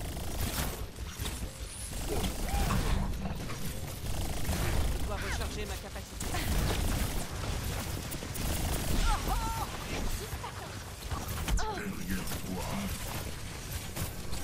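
An energy weapon fires in loud, rapid bursts.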